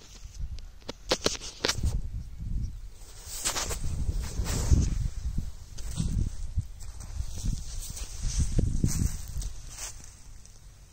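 Leaves rustle and brush close by.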